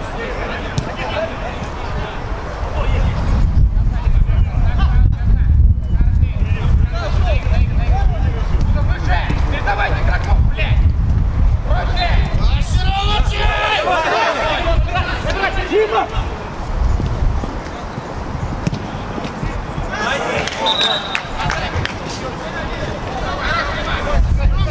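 Young men shout to each other outdoors, some distance away.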